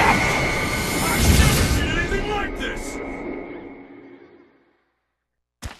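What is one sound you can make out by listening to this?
A loud blast roars and slowly fades away.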